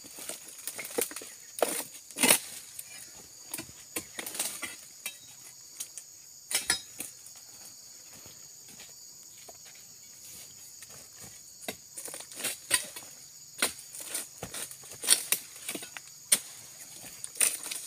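A long pole knocks and scrapes against palm fronds.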